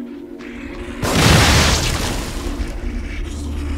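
An explosion booms and rumbles nearby.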